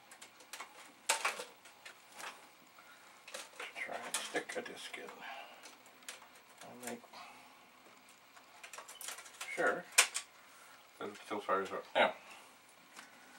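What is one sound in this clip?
Computer parts clatter and click on a workbench.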